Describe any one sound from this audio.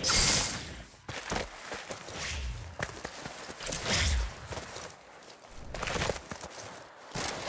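Footsteps patter quickly on dirt.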